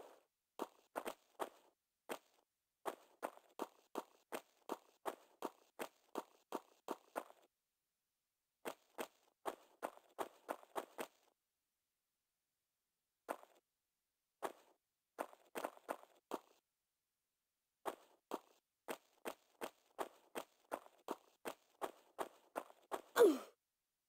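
Footsteps patter quickly on a stone floor.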